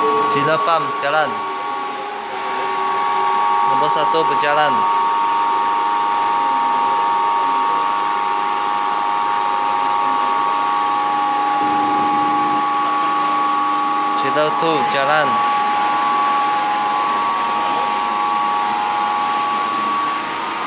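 Electrical cabinets hum steadily.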